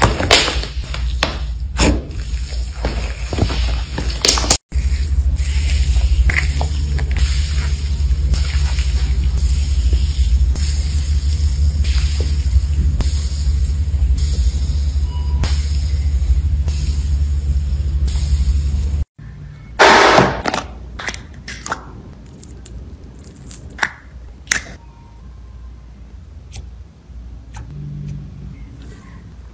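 Slime squishes and squelches between fingers.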